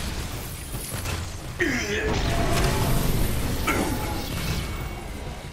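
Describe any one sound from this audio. Electric energy blasts crackle and boom in a game battle.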